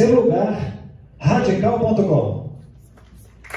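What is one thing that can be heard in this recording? A man speaks through a microphone and loudspeaker.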